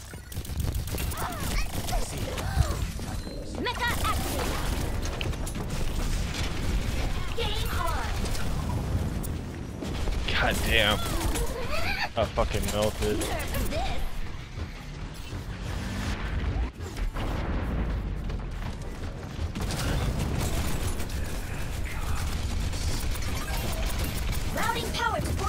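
Game guns fire in rapid bursts.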